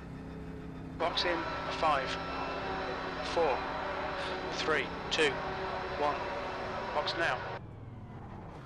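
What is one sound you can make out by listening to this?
Tyres squeal as a race car turns.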